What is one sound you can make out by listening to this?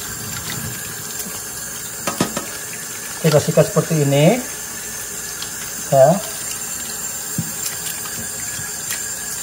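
Water runs steadily from a tap into a metal sink.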